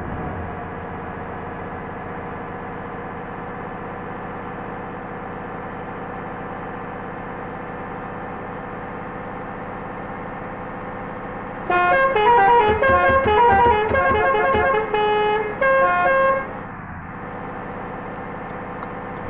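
A bus engine drones steadily at speed.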